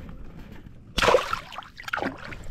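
Water splashes close by.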